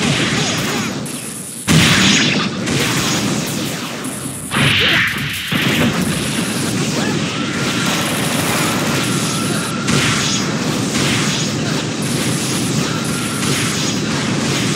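Rapid video game hit effects crash and clatter.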